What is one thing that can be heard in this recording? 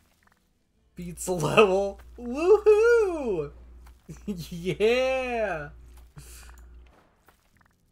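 A young woman talks with animation into a close microphone, in a sing-song voice.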